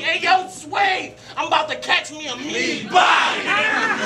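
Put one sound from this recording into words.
A man raps forcefully into a microphone.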